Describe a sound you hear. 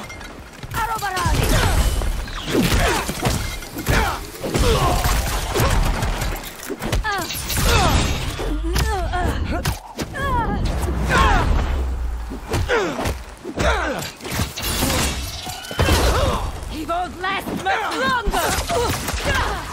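Punches and kicks land with hard thuds.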